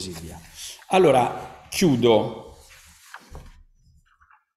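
An elderly man speaks into a microphone with animation, heard through an online call.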